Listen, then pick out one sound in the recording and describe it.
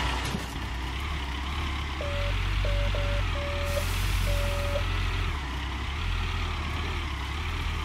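Excavator tracks clank and squeak as the machine moves.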